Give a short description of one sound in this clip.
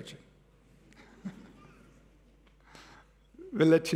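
A man chuckles softly.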